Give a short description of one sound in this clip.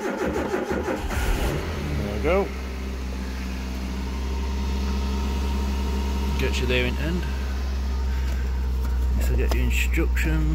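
A car engine starts and idles with a steady low rumble.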